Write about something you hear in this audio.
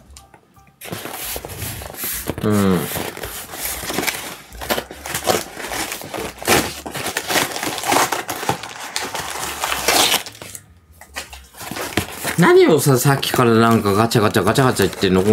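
Cardboard rustles and crinkles as a woman handles it.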